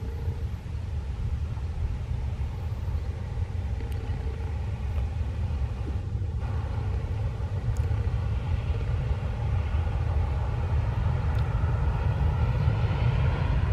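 A diesel-hauled passenger train rumbles along in the distance.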